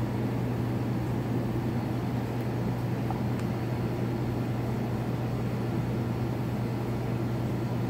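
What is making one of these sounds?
Water bubbles softly in an aquarium.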